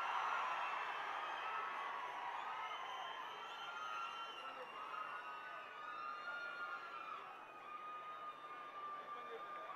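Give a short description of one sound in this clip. A large crowd cheers and shouts loudly outdoors.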